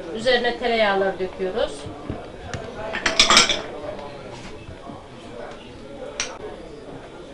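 Bowls clink against plates.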